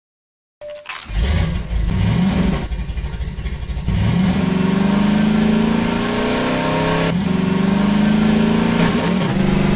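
A vehicle engine rumbles and revs up as it drives along.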